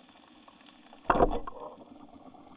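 A speargun fires underwater with a sharp snap.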